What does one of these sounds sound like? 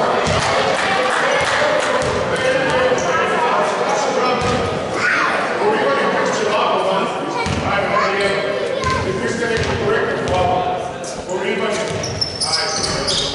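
Young men shout and call to each other in a large echoing hall.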